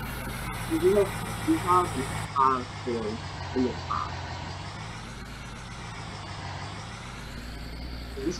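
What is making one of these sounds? A pickup truck engine hums low and steady.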